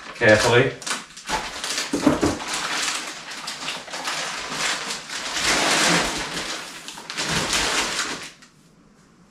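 Plastic wrapping rustles and crinkles loudly as it is pulled off.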